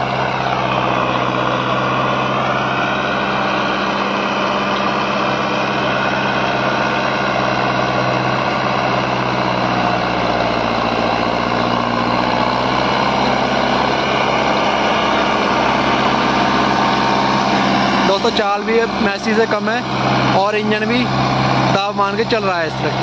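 A diesel tractor engine labours under load.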